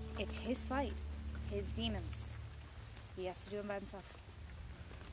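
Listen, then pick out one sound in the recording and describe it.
A young woman speaks calmly outdoors.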